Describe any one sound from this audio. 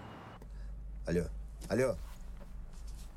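A middle-aged man speaks briefly into a phone, close by.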